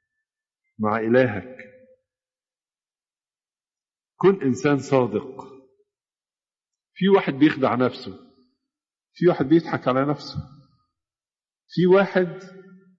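An elderly man speaks in short, clear phrases with pauses between them.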